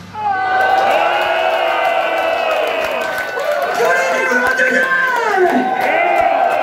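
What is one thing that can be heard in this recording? A metal band plays live with distorted electric guitars.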